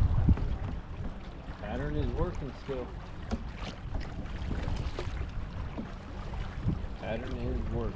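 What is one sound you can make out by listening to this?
A fishing reel clicks as a line is cast and reeled in.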